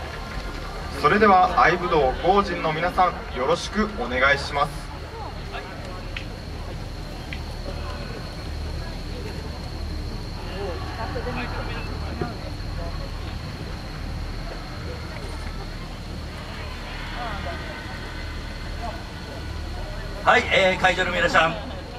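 A group of young men shout a chant together loudly outdoors.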